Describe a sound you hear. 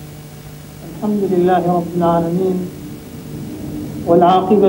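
A man recites in a slow, melodic chant through a microphone.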